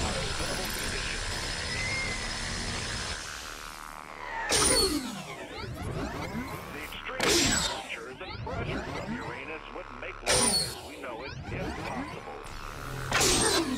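Electric energy crackles and zaps in sharp bursts.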